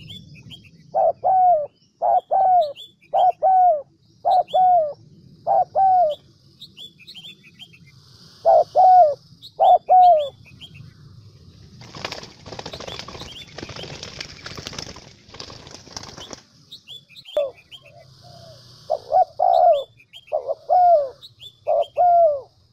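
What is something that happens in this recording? A dove coos close by in short repeated calls.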